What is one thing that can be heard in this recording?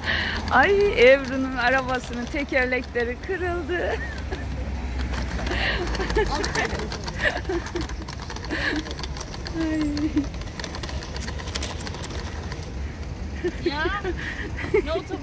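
Small wheels of a shopping trolley rattle and rumble over paving stones.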